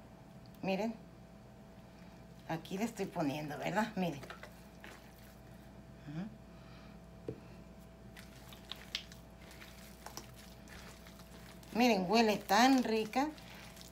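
Hands squish and mix soft food in a bowl.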